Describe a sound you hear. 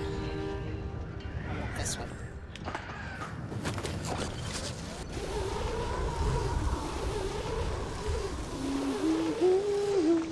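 Wind rushes loudly past during a fast slide and drop.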